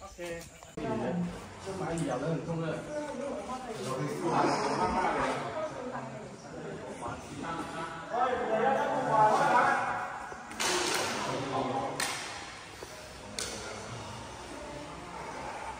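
Footsteps walk on a hard floor in a large echoing hall.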